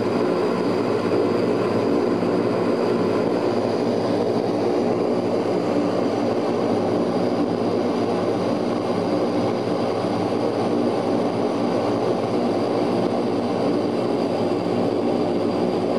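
Propeller engines drone loudly and steadily, heard from inside an aircraft cabin.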